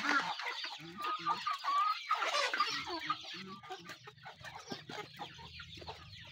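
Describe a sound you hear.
Chickens cluck and chirp nearby.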